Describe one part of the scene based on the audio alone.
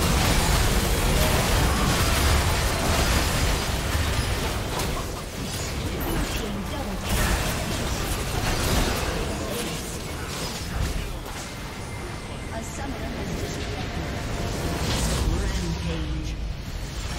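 Game spell effects crackle and blast in a dense battle.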